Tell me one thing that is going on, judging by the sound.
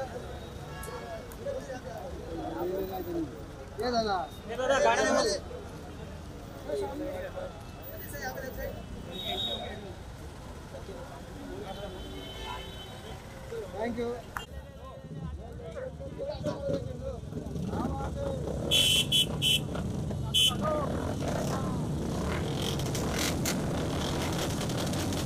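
Several men talk and call out loudly close by outdoors.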